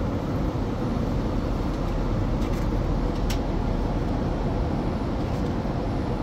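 Paper pages rustle as a booklet's page is turned.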